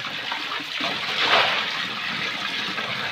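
Water pours from a bowl into a basin.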